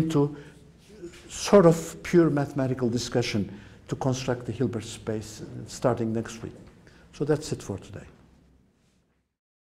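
An elderly man lectures calmly in a room with a slight echo.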